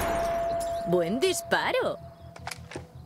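A young woman speaks cheerfully.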